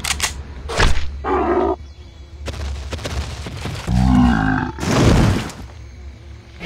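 A large dinosaur bellows in pain.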